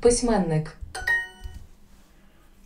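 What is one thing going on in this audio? A short, bright chime rings.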